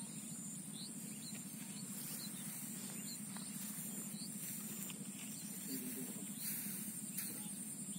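Wind blows steadily across an open field, rustling the crops.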